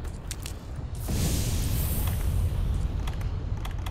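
A magical blast bursts with a loud whoosh and fades.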